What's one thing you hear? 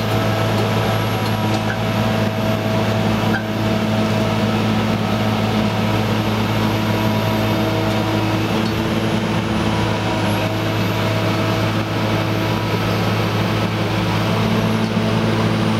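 A heavy diesel engine drones steadily close by.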